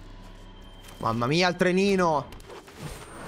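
A man speaks with animation into a close microphone, drawing out his words.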